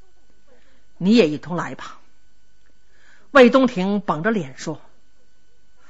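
A middle-aged woman speaks with expression, telling a story.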